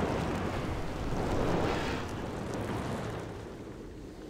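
Flames whoosh and crackle close by.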